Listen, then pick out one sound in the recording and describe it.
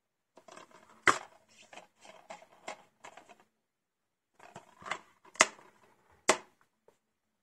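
A plastic disc case clicks open and snaps shut.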